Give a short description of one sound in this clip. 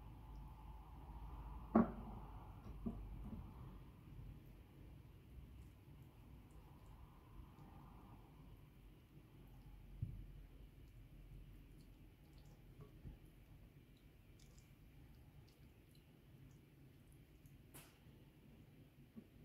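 A spatula scrapes and taps against a glass bowl.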